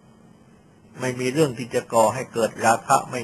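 An elderly man speaks calmly and close.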